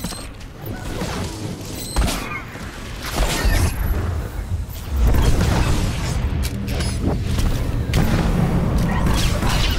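Energy blasts crackle and zap in a sci-fi battle.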